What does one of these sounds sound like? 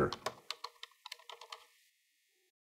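Keys clatter as someone types quickly on a keyboard.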